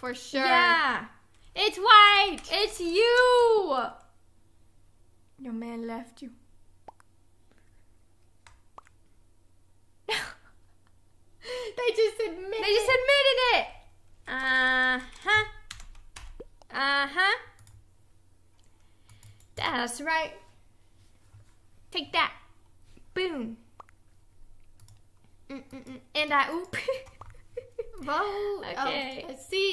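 A second young woman talks with animation into a microphone close by.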